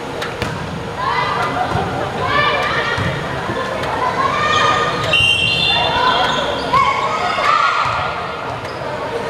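A group of young players shout and cheer together in a large echoing hall.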